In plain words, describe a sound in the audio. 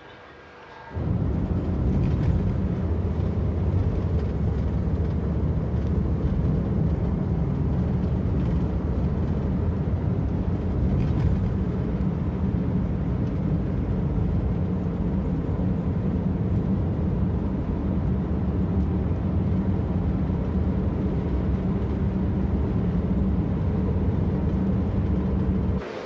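A car drives along a road, with a low rumble of road noise heard from inside.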